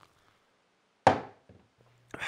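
A glass is set down on a table with a knock.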